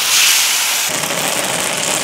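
Sauce bubbles and simmers in a pan.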